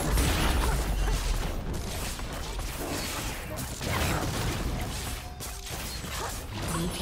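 Magic blasts and weapon hits crackle and thud in a fast video game battle.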